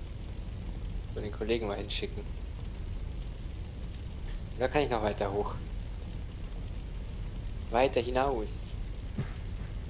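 Water sprays steadily from a fire hose.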